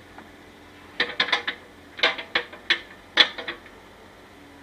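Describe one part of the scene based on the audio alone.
A steel excavator bucket clanks and scrapes loudly against another bucket.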